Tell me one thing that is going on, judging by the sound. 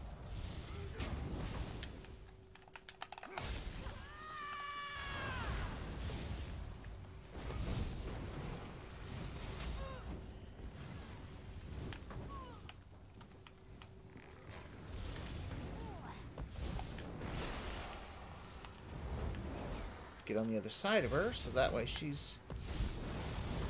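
Magic blasts crackle and burst in a fight.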